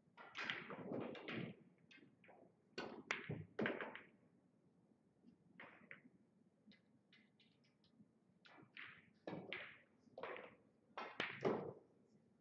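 A cue tip strikes a billiard ball.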